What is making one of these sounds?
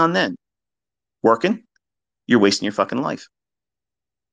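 A man speaks in short bursts, close to a microphone.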